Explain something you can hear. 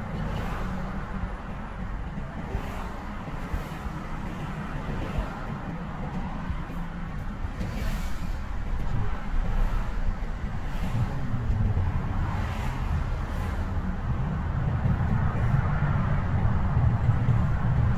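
A car engine hums low and steady from inside the cabin, growing louder toward the end.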